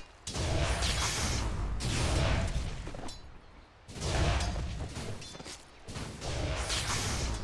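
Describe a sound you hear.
Game spells burst and whoosh in a fight.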